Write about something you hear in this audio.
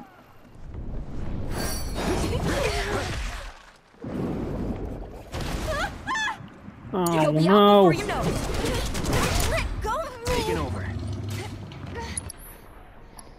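Magical blasts burst and whoosh in a fight.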